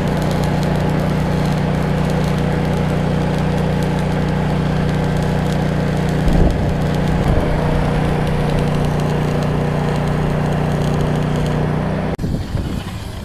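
An electric welder crackles and sizzles steadily.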